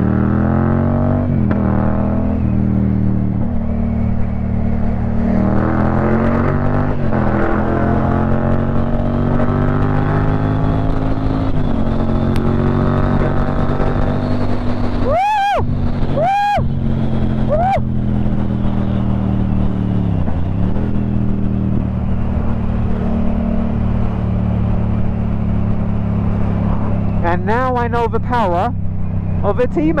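A parallel-twin motorcycle engine hums as the bike cruises along a road.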